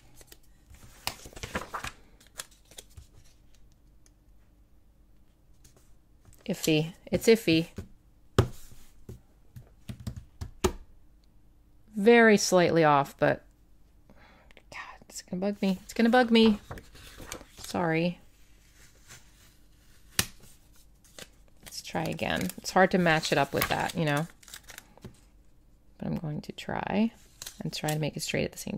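Paper rustles and crinkles under hands.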